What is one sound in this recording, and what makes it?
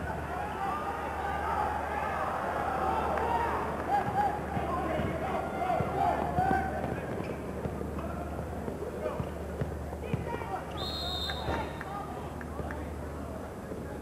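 A large indoor crowd cheers and shouts, echoing through a big hall.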